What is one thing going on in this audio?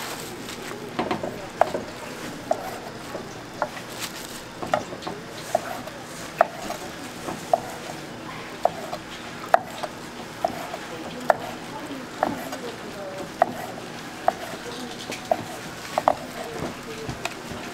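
A knife chops steadily through food onto a wooden board.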